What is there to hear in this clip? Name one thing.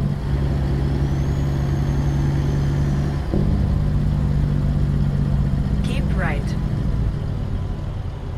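A truck's diesel engine rumbles steadily inside the cab.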